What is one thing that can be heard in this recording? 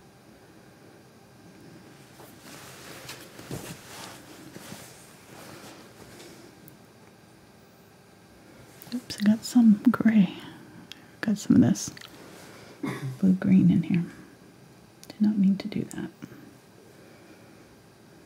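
A paintbrush dabs and brushes softly on canvas.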